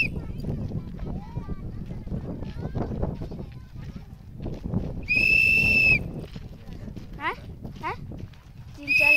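A whistle blows in loud, shrill blasts.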